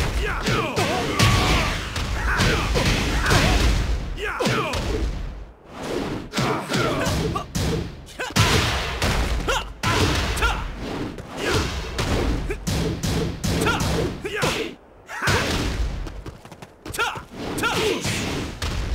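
Punches and kicks land with heavy, sharp impacts in a video game.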